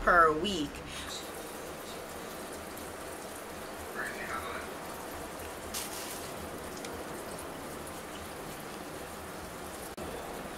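Hands rub a lathered face with soft, wet squishing.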